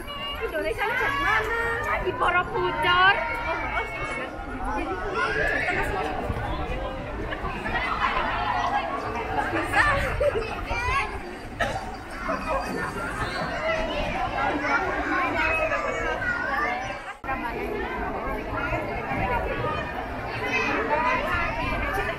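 A crowd of people chatter outdoors along a street.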